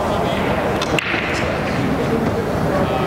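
Pool balls crack together and scatter on a break shot.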